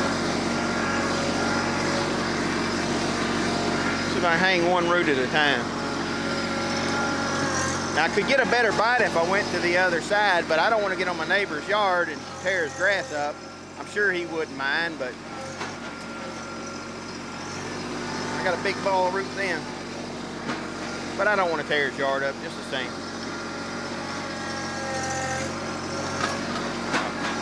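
A tractor engine runs steadily close by.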